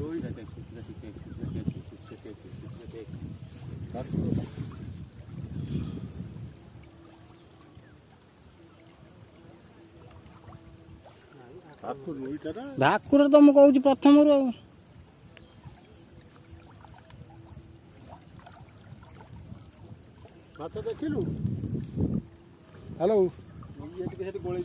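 Small waves lap gently against the shore.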